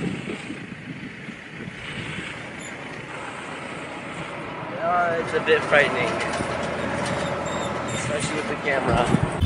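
A car engine rumbles as a vehicle drives along a winding road.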